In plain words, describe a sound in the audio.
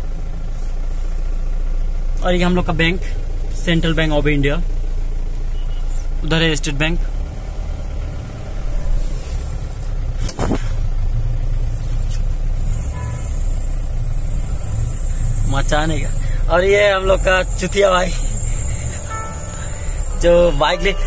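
A vehicle engine rumbles low and steadily from inside the vehicle.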